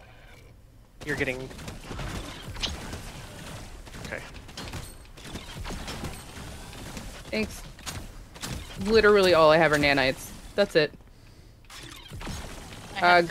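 Gunfire rattles in a video game.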